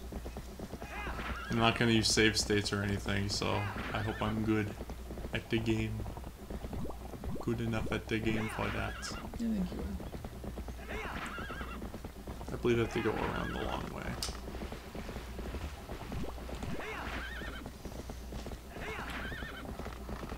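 A horse gallops with thudding hooves.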